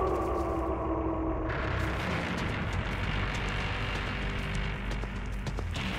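Footsteps run quickly over dirt and brush.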